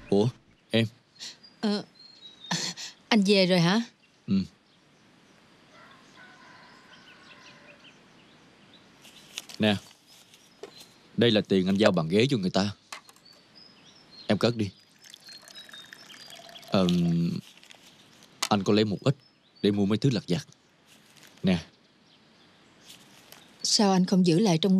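A woman talks calmly nearby.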